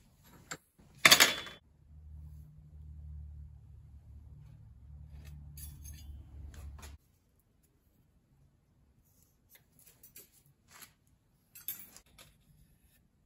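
Metal clanks on a metal bench.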